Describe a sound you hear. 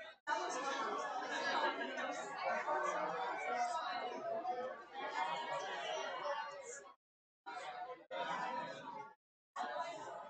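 A crowd of men and women chat and mingle in a large echoing hall.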